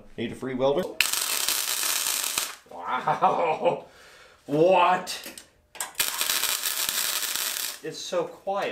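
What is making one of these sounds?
An electric welder crackles and sizzles in loud bursts.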